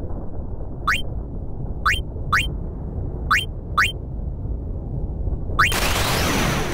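Short rising menu blips sound as options are chosen.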